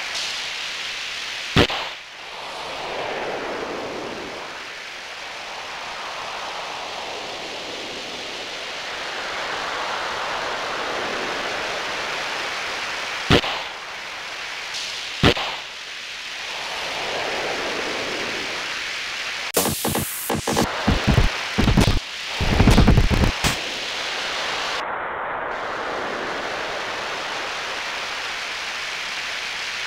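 A snowboard swishes steadily over snow, rising and falling in a rushing hiss.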